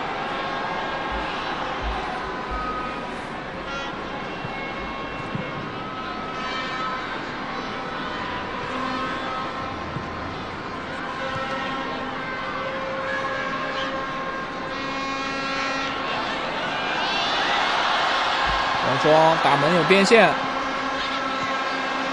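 A large stadium crowd cheers steadily, rising to a loud roar as an attack builds.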